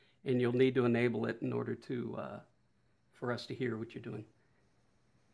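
A middle-aged man speaks calmly into a close microphone over an online call.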